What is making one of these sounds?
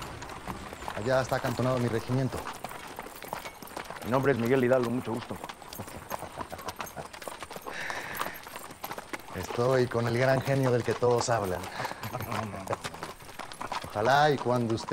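A man speaks calmly nearby, outdoors.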